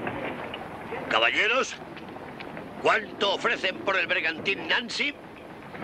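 An elderly man laughs and speaks with animation, close by.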